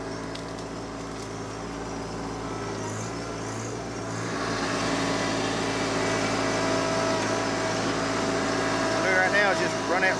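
Branches and brush scrape and crackle as they are pushed along the ground.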